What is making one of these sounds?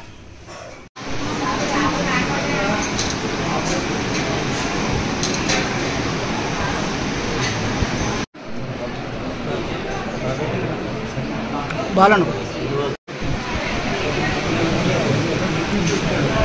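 A crowd of men chatter close by.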